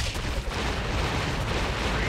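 Lightning cracks with a loud crash.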